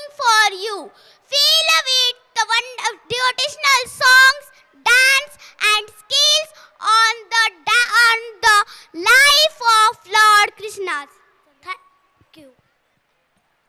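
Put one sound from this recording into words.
A young girl speaks with animation into a microphone, heard through loudspeakers.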